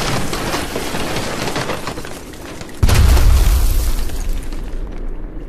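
Bricks crash and scatter as a wall bursts apart.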